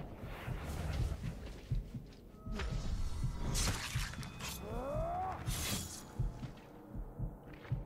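Heavy blows land in a short, scuffling fight.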